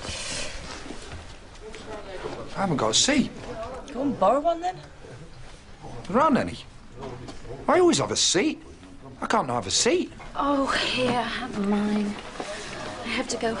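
A crowd murmurs in a busy room.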